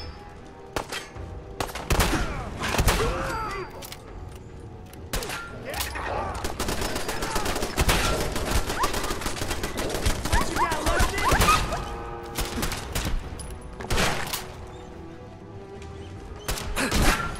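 Gunshots fire loudly in quick bursts.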